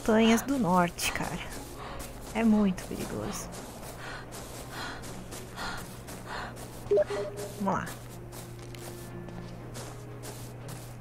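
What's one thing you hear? Footsteps tread steadily over leafy ground.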